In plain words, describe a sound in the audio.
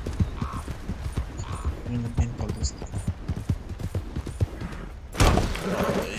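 Horse hooves thud rapidly on a dirt path.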